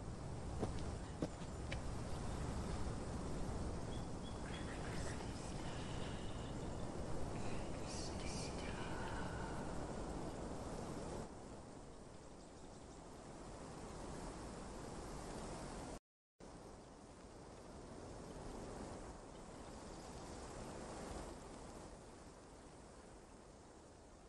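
A woman's footsteps crunch softly on leaves as she walks through dense bushes.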